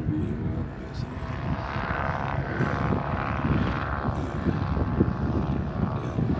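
An airplane engine drones overhead, growing louder and then easing off.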